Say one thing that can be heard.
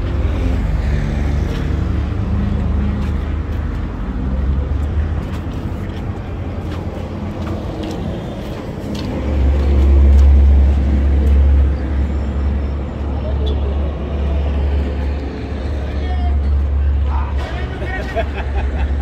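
Traffic hums along a nearby street.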